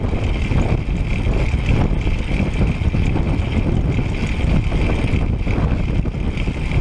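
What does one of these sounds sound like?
Bicycle tyres hum steadily on smooth asphalt.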